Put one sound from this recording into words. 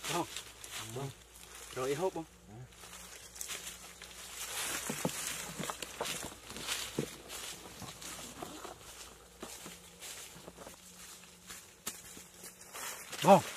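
Dry leaves crunch and rustle as men scuffle on the ground.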